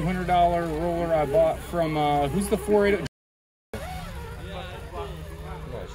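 An electric toy car's motor whines as it climbs over rocks.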